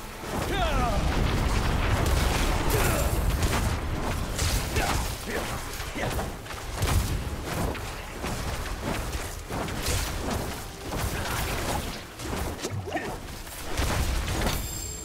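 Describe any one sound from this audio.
A young man speaks into a microphone.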